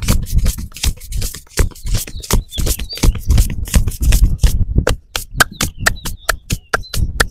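Hands slap and pat rapidly on a man's head.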